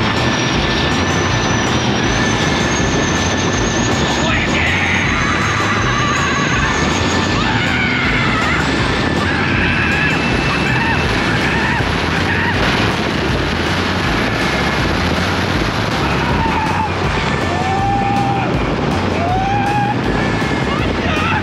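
A boat engine roars loudly and steadily close by.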